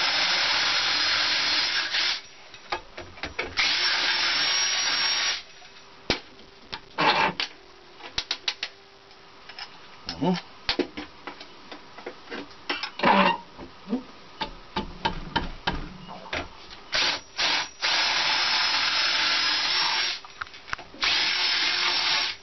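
A drill press whirs loudly as it drills into metal.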